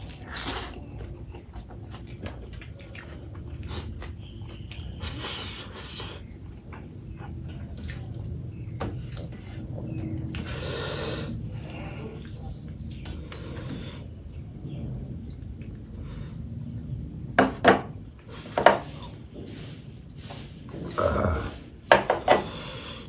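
A man's fingers squelch and squish through soft rice close to the microphone.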